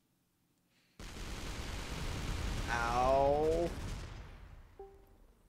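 A loud explosion bursts and slowly fades.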